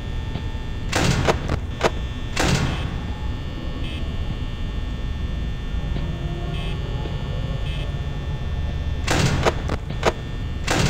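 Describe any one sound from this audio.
Static hisses in short, loud bursts.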